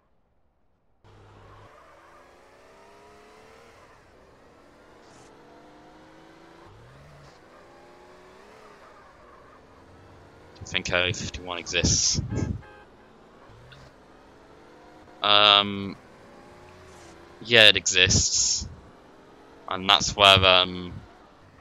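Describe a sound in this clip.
A car engine revs and roars as a car speeds along.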